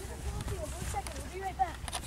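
Children talk quietly nearby.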